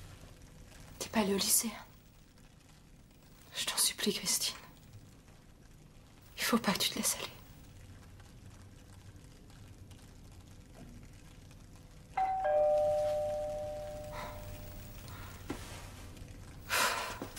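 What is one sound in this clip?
A woman speaks quietly and calmly, close by.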